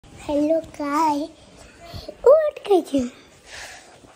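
A young girl speaks playfully and sings out close to the microphone.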